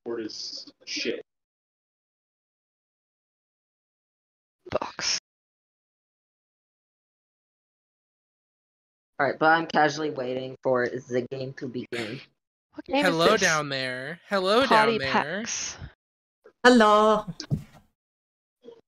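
A young woman talks with animation into a microphone, in short bursts with pauses.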